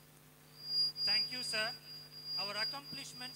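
A man speaks through a microphone and loudspeakers.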